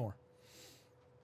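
A young man speaks a brief word close to a microphone.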